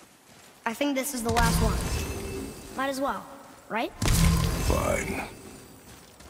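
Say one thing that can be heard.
An axe strikes a creature with wet, crunching blows.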